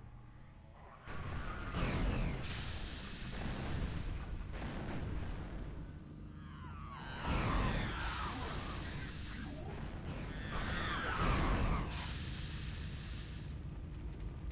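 Energy weapons fire in bursts with crackling blasts.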